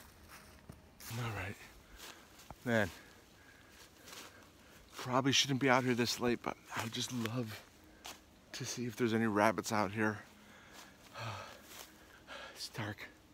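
A man speaks quietly and close by, outdoors.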